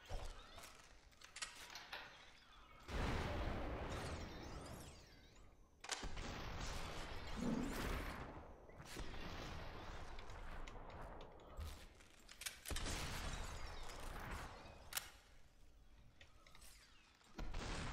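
Glass and objects shatter with a crash.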